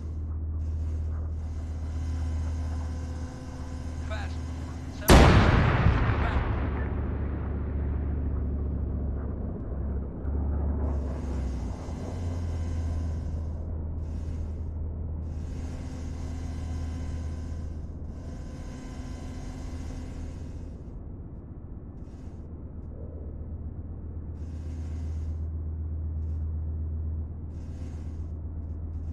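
A jet engine drones steadily in the distance.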